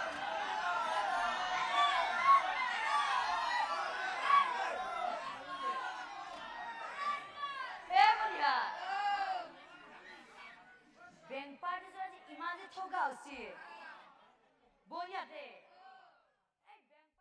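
A crowd of young women cheers and calls out nearby.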